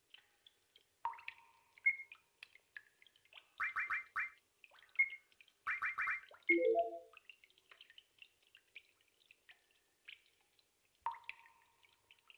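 Short electronic menu chimes beep now and then.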